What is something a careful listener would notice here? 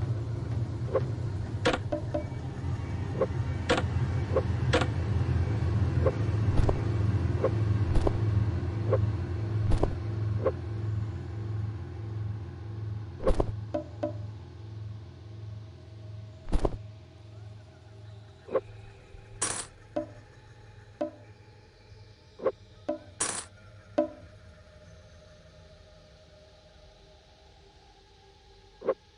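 Short game interface clicks and clatters sound as items are picked up and dropped.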